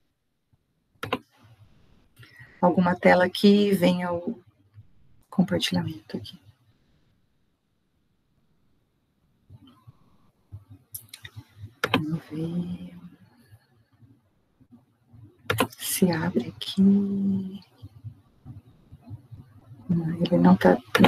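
A woman speaks calmly over an online call, in bursts with pauses.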